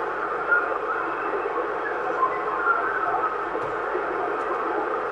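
Static hisses and crackles from a radio receiver.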